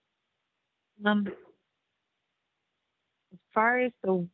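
A woman speaks briefly through an online call.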